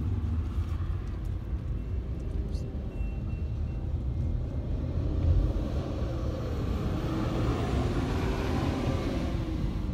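A freight train rumbles past, its wheels clattering on the rails.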